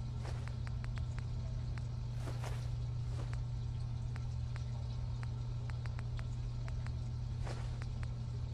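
Soft electronic clicks tick as a menu list scrolls.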